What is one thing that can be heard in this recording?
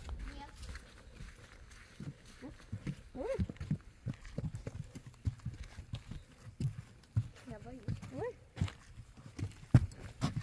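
Footsteps thud on a wooden boardwalk.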